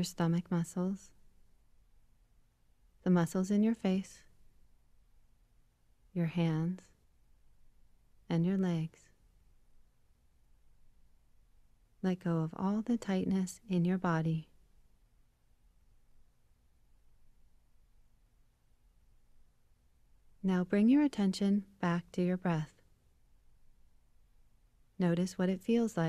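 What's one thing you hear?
A woman speaks slowly and calmly through an online call, with long pauses.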